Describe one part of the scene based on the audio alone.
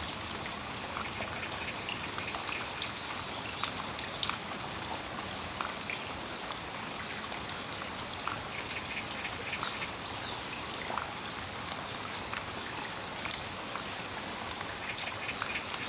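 Raindrops drip and tap on a metal awning.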